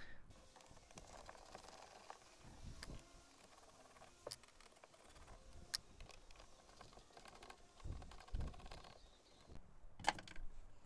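Small metal tools click and scrape against plastic up close.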